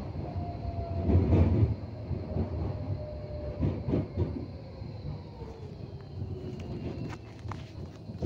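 Tram wheels squeal on a curve.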